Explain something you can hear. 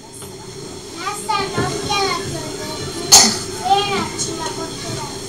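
A young boy recites into a microphone, heard through loudspeakers.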